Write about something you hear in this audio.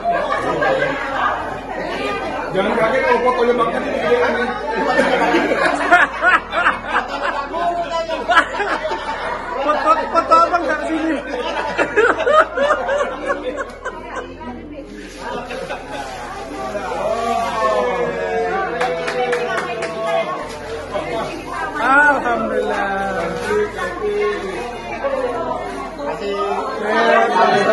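A woman laughs and talks with animation close by.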